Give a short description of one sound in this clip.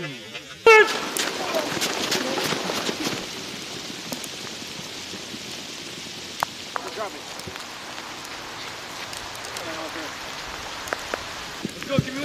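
Boots crunch on snow as several men run.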